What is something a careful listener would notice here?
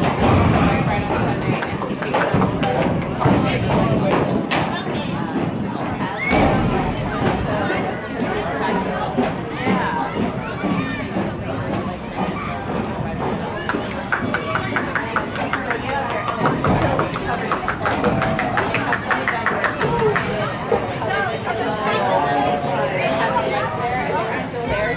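A crowd of young people and adults chatters and cheers outdoors nearby.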